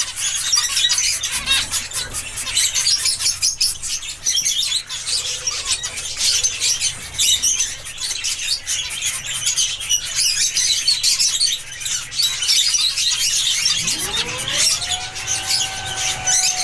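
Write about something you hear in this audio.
Small finches chirp and twitter busily close by.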